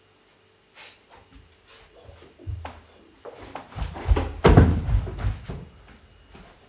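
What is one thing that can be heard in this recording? Feet shuffle and thump on a carpeted floor.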